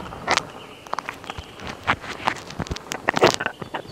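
A flag flaps in the wind.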